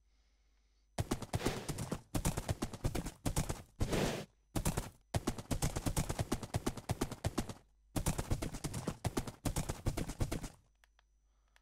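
A horse's hooves clop quickly over the ground.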